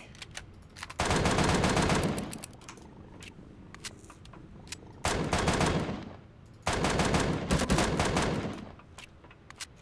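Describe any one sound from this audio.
A gun fires in loud, roaring bursts.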